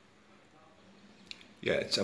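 A small plug clicks into a laptop port.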